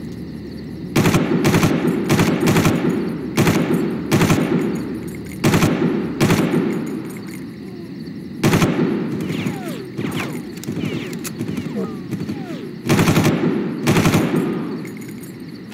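A rifle fires loud bursts of rapid shots that echo away.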